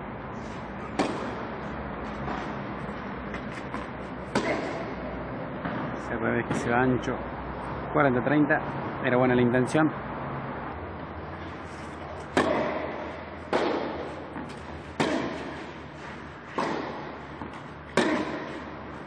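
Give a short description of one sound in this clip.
Tennis balls are struck with rackets, echoing in a large hall.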